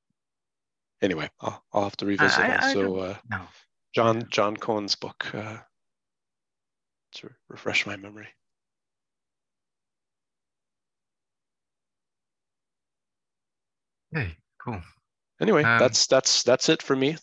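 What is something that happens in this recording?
A man speaks calmly into a microphone, heard through an online call.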